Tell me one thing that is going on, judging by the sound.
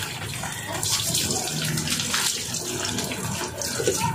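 Water from a hose splashes onto a puppy.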